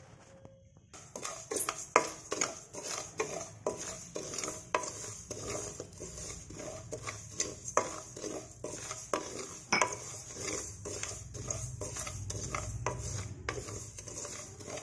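A wooden spatula stirs dry seeds around a metal pan.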